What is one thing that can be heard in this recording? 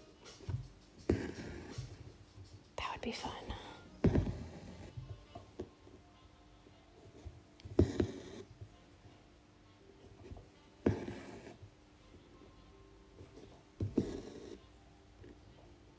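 Thread is pulled through taut fabric with soft swishing rasps.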